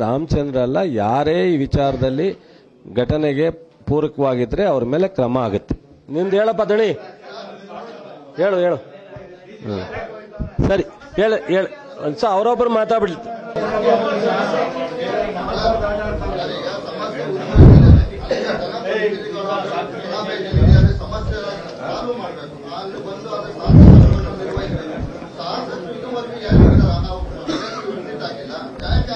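A middle-aged man speaks animatedly into a microphone.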